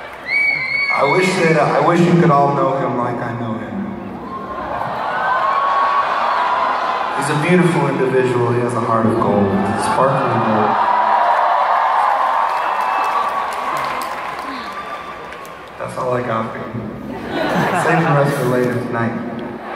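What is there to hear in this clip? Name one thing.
A man sings through a microphone over loudspeakers.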